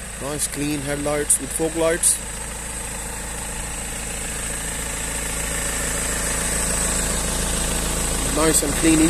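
A car engine idles steadily up close.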